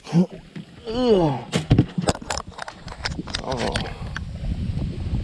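A fishing reel clicks and rattles close by.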